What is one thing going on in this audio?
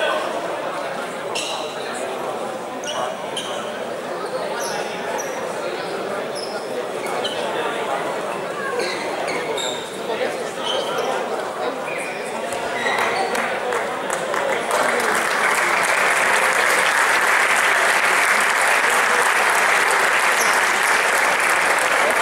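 Men call out to each other in a large echoing hall.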